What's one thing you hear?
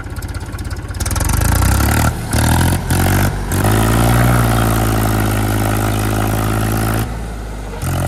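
A tractor engine revs loudly.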